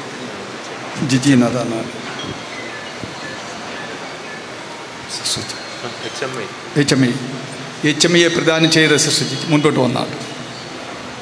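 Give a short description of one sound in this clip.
A man speaks through a microphone, heard over loudspeakers in an echoing hall.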